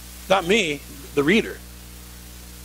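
A man speaks briefly and loudly to an audience.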